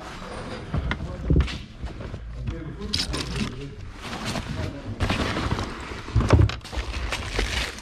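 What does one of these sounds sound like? Hands rustle through bags and clutter.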